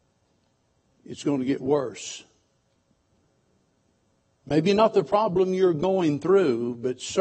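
An elderly man preaches through a microphone, speaking slowly with pauses.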